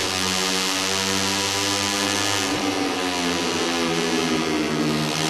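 A racing motorcycle engine roars loudly at high revs, its pitch dropping as it slows into a corner.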